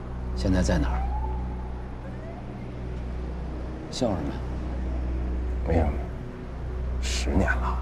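A young man chuckles softly.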